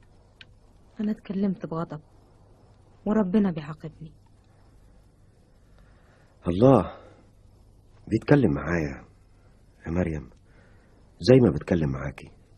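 A woman speaks softly and haltingly, close by.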